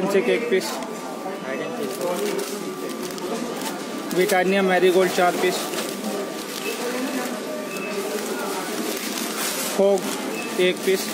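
A paper receipt rustles in a hand.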